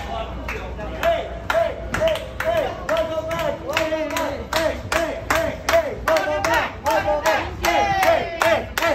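A group of people clap their hands in a steady rhythm.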